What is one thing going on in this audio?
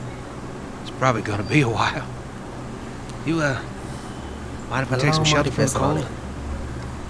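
A man speaks calmly and slowly.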